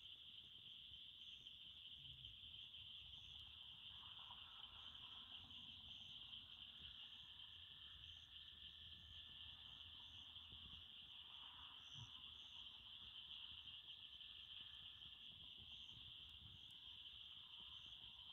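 A wood fire roars and flickers softly in a small stove.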